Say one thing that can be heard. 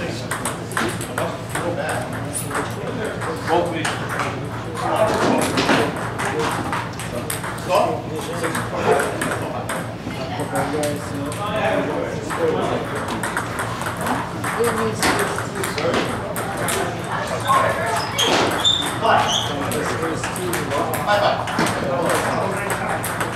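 Table tennis balls click rapidly against paddles and tables.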